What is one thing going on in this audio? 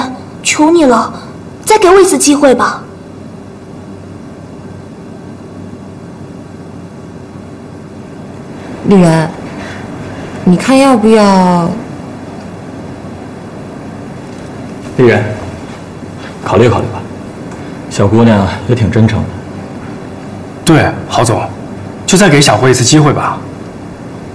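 A young woman pleads softly and earnestly, close by.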